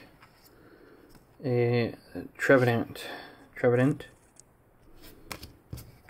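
Stiff playing cards rustle and slide against each other in a hand.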